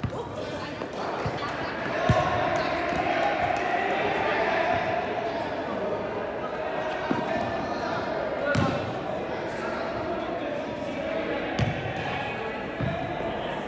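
Young men shout to each other at a distance.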